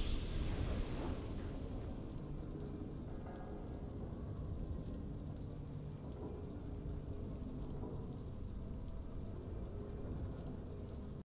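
A triumphant victory fanfare plays with a deep, swelling rumble.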